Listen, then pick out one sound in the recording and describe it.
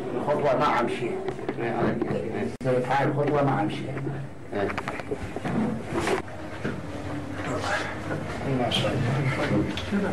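Several men talk loudly and with animation close by.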